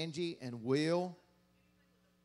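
A man sings loudly through a microphone in a large hall, then stops.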